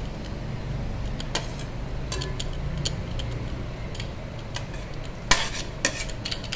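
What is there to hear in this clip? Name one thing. A metal spoon scrapes and clinks against a metal pot.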